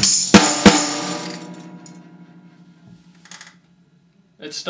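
Drums and cymbals crash twice, then the cymbals ring and slowly fade.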